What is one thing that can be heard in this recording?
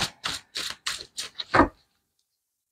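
Playing cards are shuffled with quick riffling taps.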